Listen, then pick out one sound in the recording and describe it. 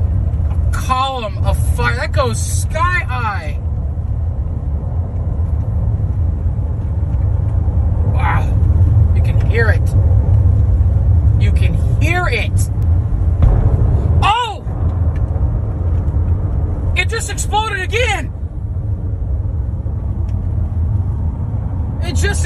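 A car rumbles steadily as it drives along.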